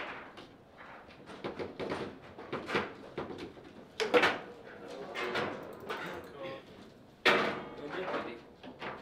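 Foosball rods clack and the ball knocks sharply against a table.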